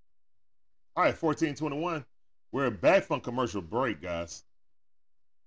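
A middle-aged man speaks with animation into a close microphone.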